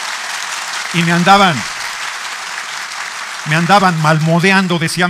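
A man speaks steadily through a microphone and loudspeakers in a large hall.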